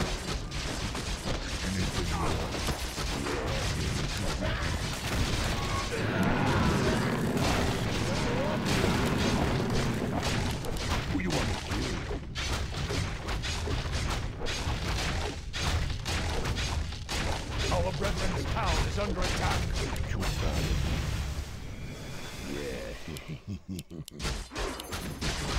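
Weapons clash and spells crackle in a fast game battle.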